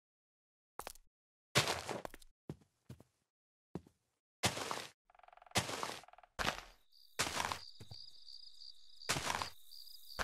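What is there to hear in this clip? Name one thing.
Leafy blocks are placed with short soft rustling thuds.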